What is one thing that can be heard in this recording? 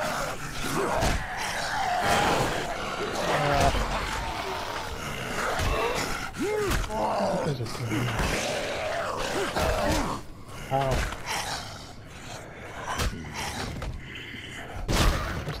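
Blades strike flesh with wet, heavy thuds.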